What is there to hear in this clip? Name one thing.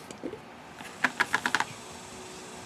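A lid is unscrewed from a glass bottle.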